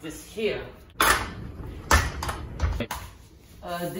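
Metal frame parts clank and knock on a hard floor.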